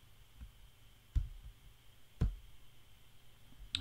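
Keys click on a computer keyboard.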